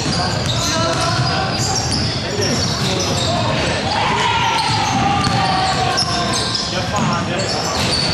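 A ball bounces on a wooden floor.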